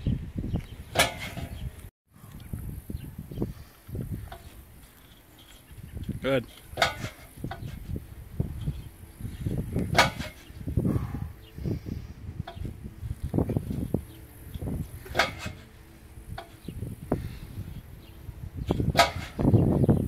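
A metal frame clanks down onto pavement.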